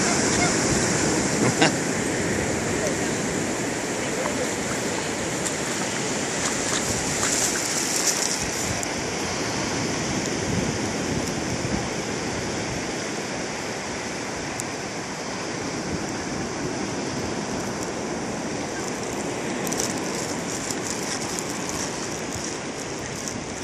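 Small waves wash gently onto the shore.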